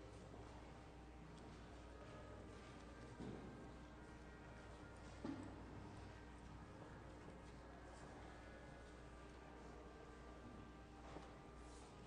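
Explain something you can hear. A double bass plays bowed low notes.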